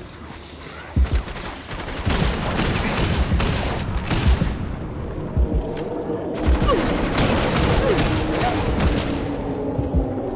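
Gunshots crack and thud in quick bursts.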